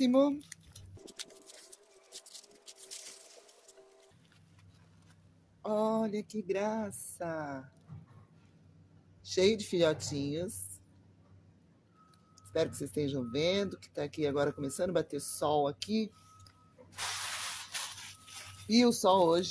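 Paper crinkles and rustles.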